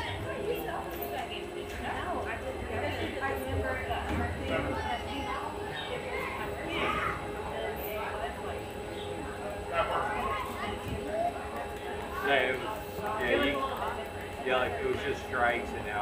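Players shout and call out across an open outdoor field.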